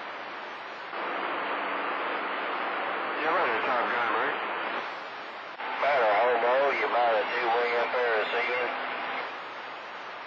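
A transmission comes through a radio loudspeaker over the static.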